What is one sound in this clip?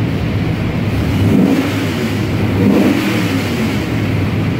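A large engine revs up and down.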